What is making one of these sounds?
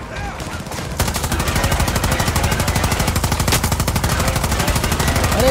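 A machine gun fires in a rapid, steady burst.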